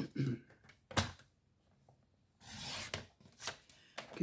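A paper trimmer blade slides along its rail, cutting through card.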